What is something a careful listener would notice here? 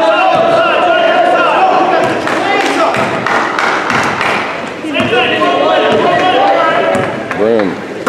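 A basketball bounces on the court as a player dribbles.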